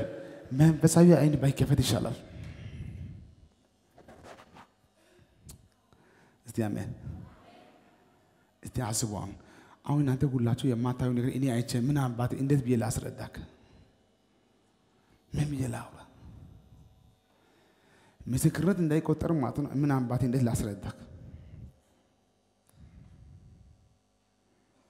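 A man preaches with animation through a microphone, in a large echoing hall, with pauses between bursts of speech.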